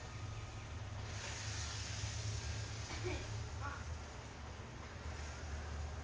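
Water sprays from a garden hose in a hissing stream, outdoors.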